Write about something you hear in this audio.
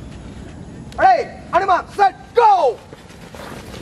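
A man shouts loud commands outdoors.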